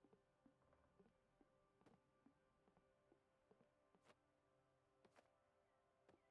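A video game plays light, bouncy music with short plucked notes.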